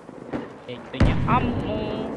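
A rifle fires a single loud shot close by.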